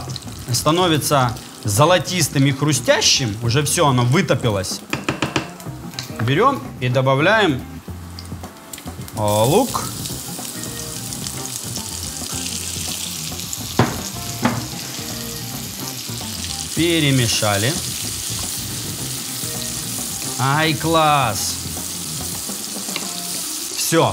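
A wooden spatula scrapes a frying pan.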